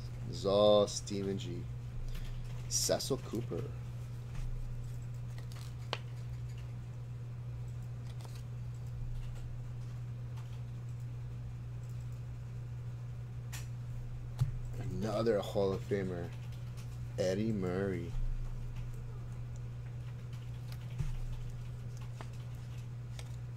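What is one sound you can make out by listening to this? Plastic card sleeves rustle and crinkle in hands.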